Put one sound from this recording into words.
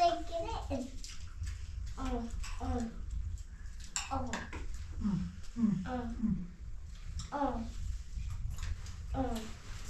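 Plates and spoons clink softly.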